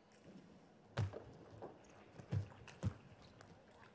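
A table tennis ball clicks quickly back and forth between paddles and the table.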